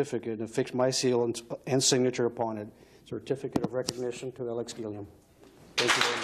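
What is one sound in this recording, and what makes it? A man speaks through a microphone in a formal tone.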